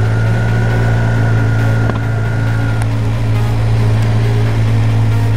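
A motorcycle engine runs with a steady low rumble.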